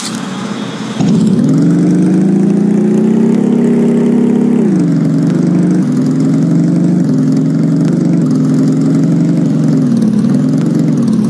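A motorcycle engine revs and roars up close.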